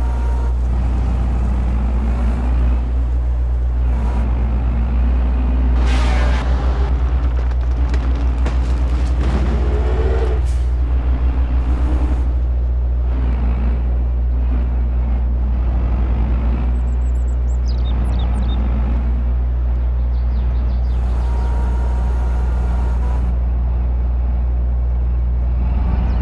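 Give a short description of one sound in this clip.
A heavy machine's diesel engine drones steadily.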